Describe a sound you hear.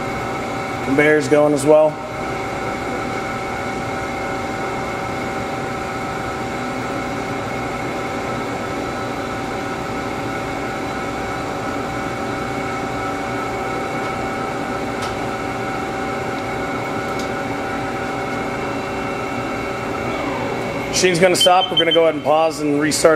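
A machine's moving part slides with a whirring, grinding sound.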